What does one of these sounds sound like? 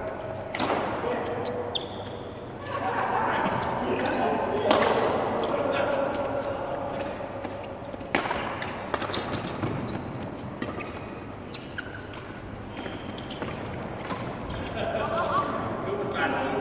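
Badminton rackets smack a shuttlecock sharply in a large echoing hall.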